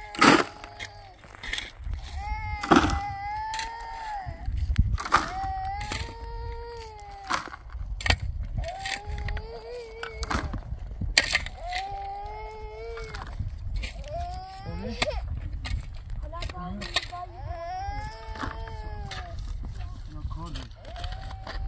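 A shovel scrapes and digs into dry earth.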